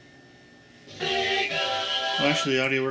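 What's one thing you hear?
A video game startup jingle plays loudly through television speakers.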